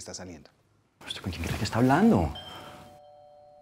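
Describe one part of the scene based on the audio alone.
A man speaks in a tense voice close by.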